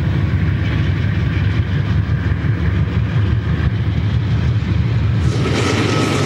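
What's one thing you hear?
A diesel locomotive engine rumbles close by.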